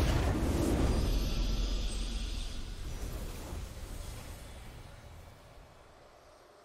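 A triumphant game fanfare booms and slowly fades away.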